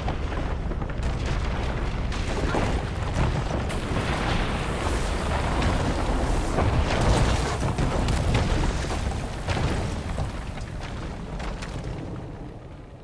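A huge mass of roots rumbles and creaks as it heaves upward.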